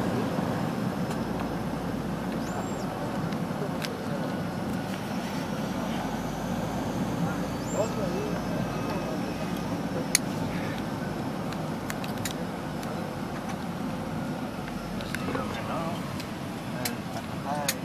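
A propeller plane's engines drone steadily inside the cabin.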